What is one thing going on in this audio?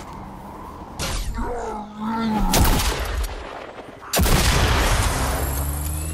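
A gun fires loud, sharp shots.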